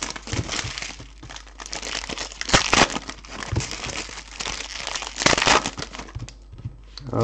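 A foil wrapper crinkles and tears open close by.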